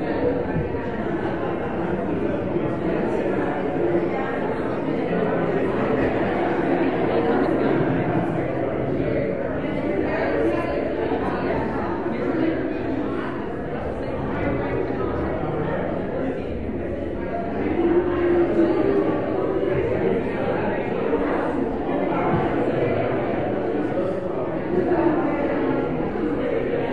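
Many men and women chatter in a large echoing hall.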